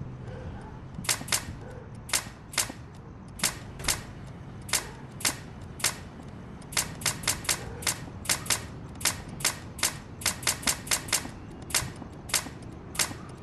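A toy gun fires rapid popping shots.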